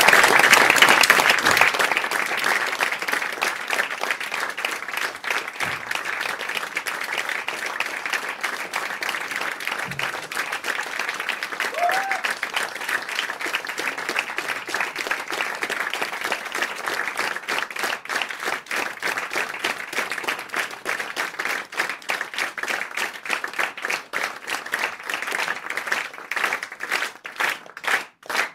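An audience applauds steadily and cheers in a small room.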